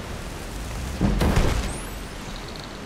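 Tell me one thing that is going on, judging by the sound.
A spell bursts with a loud, sudden whoosh.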